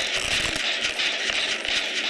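A machine rattles and clatters close by.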